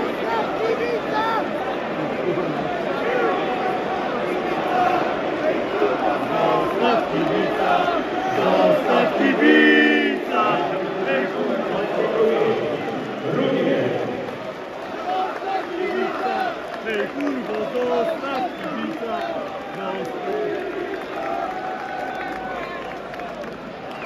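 A large stadium crowd cheers and shouts loudly all around.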